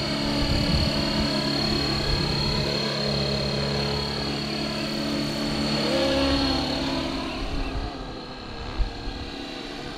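A model helicopter's rotor whines and buzzes steadily overhead, fading as it flies off.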